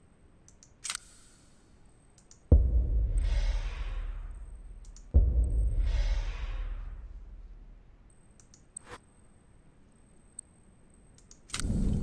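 Soft clicks sound as menu options are picked.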